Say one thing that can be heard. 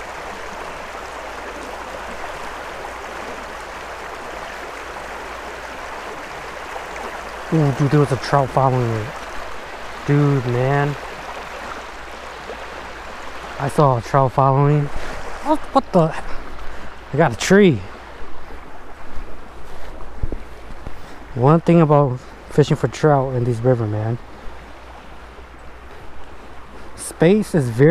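A shallow stream rushes and gurgles over rocks.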